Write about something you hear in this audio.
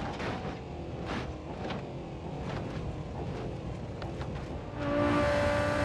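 Metal crunches as vehicles crash together.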